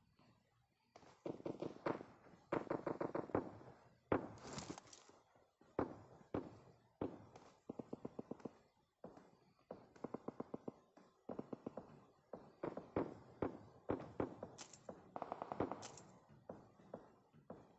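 Quick footsteps clang on metal as a game character runs.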